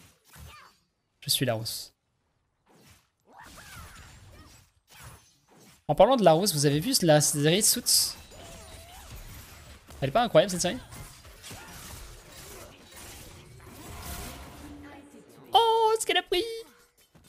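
Game spells and hits crackle and whoosh.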